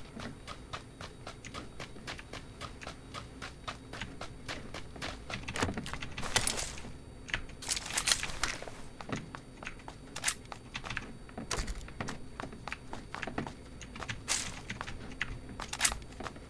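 Footsteps thud quickly and steadily on hard ground and floors.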